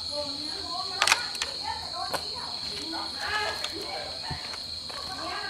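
Bamboo sticks clatter against a plastic crate.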